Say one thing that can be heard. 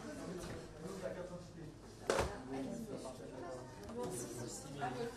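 A woman and a man talk calmly nearby.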